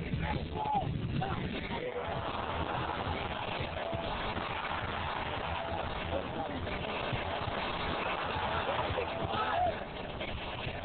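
Men shout to each other outdoors on a playing field.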